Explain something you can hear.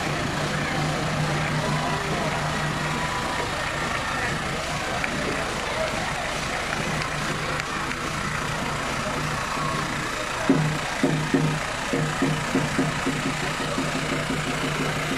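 A crowd chatters along the street outdoors.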